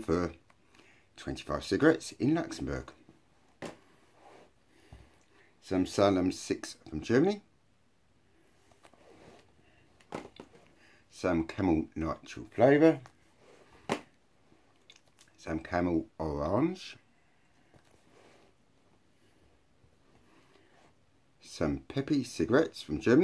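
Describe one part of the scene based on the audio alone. A middle-aged man talks calmly and close to the microphone, in short bursts with pauses.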